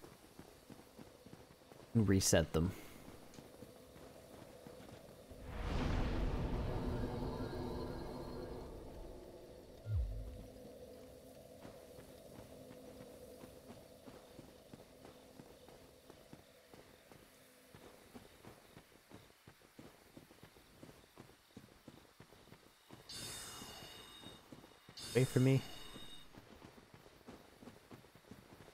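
Armoured footsteps clank and crunch on stone and grass.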